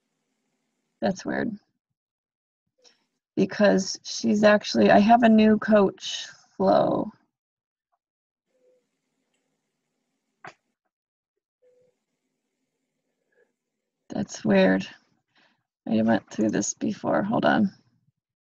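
A woman speaks calmly and closely into a microphone, in short bursts.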